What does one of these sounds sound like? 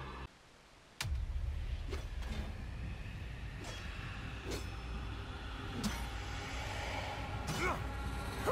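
A strong wind roars and howls steadily outdoors.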